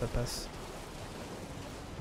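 Water splashes under running footsteps.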